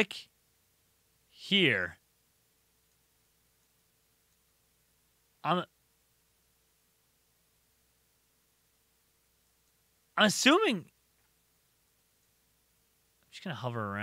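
A young man speaks into a close microphone in short, animated bursts.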